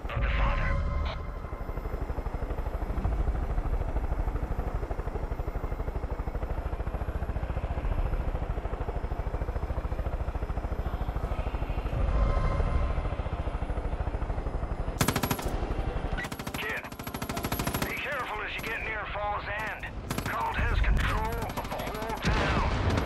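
A helicopter's rotor thumps steadily as it flies.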